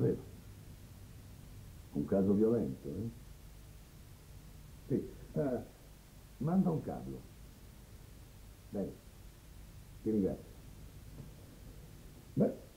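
A middle-aged man speaks on a phone in short, calm bursts, close by.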